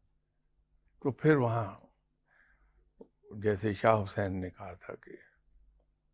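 An older man speaks calmly into a close microphone.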